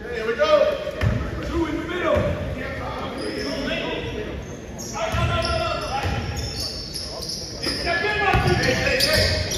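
Young men call out to each other in an echoing hall.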